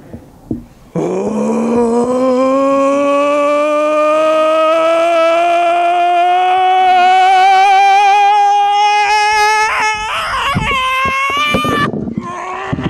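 A man sings one long, slowly rising note through a microphone.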